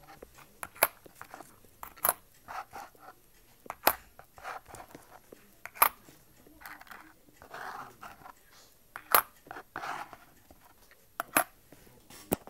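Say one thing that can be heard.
Coins slide and scrape across cardboard.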